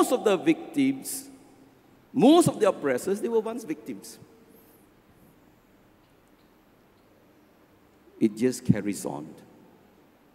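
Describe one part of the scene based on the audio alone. An elderly man speaks expressively into a microphone in an echoing hall, with long pauses.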